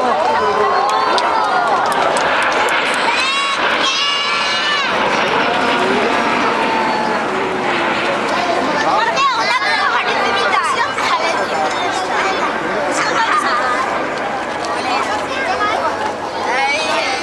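Small jet trainers roar far overhead.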